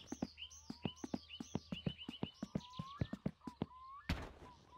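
Footsteps tap quickly on a paved road.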